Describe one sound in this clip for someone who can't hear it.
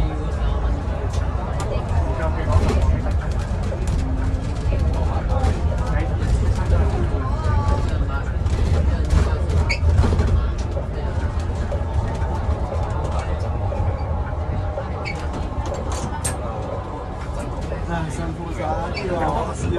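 A bus engine hums and rumbles steadily from inside the bus.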